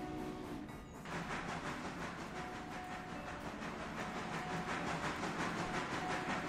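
A steam locomotive chuffs steadily and loudly.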